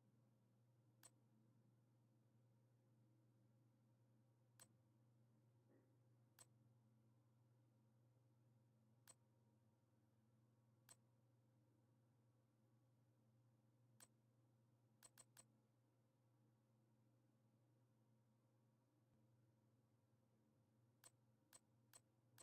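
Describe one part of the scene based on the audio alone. Soft menu clicks tick every few seconds.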